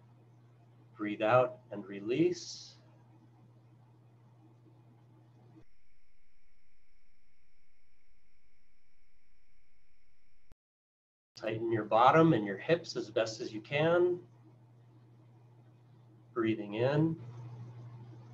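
A middle-aged man speaks calmly through a computer microphone in an online call, in short bursts with pauses.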